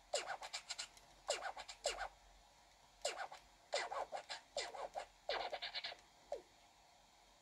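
Cartoonish game voices babble in quick, chirpy bursts.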